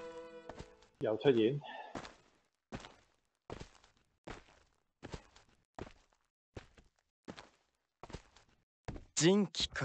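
Footsteps tread slowly on hard ground.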